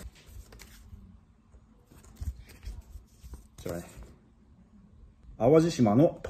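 Paper rustles as a man handles a leaflet.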